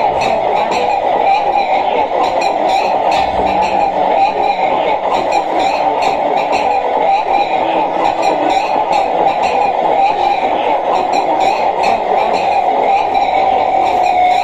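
Sharp electronic clicks and ticks patter in an uneven rhythm.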